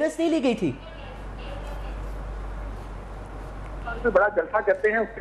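A man speaks into a microphone, reporting steadily.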